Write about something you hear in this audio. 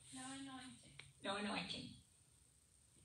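An elderly woman speaks in short bursts, some distance away in a large echoing hall.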